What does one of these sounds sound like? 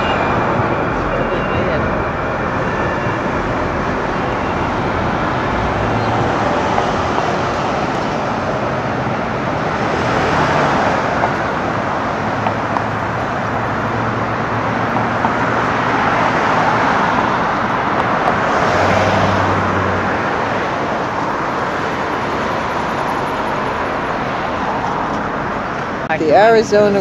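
Traffic rumbles steadily along a city street outdoors.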